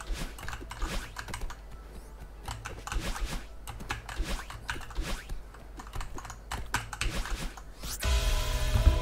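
A game character's footsteps patter quickly as it climbs and jumps.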